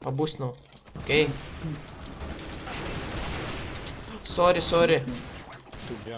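A rifle fires short bursts of shots.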